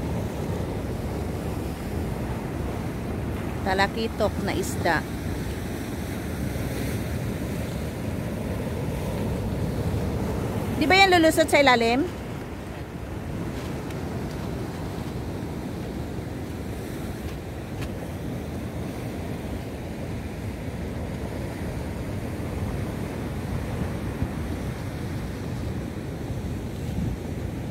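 Waves wash and crash steadily against rocks outdoors.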